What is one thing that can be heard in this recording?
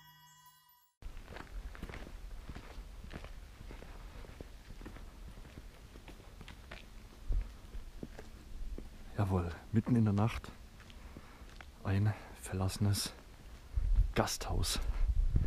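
Footsteps crunch on gravel outdoors.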